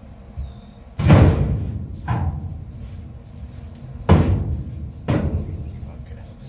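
A man knocks on a sheet metal panel with loud, ringing blows.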